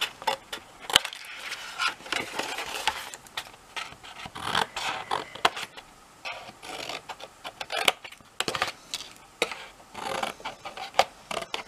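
Card paper rustles as it is handled.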